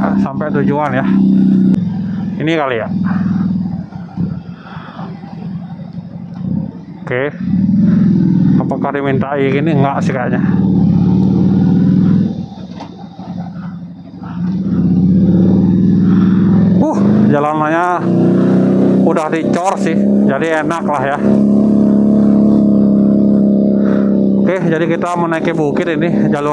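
A motorcycle engine hums close by, rising and easing off as the bike rides along.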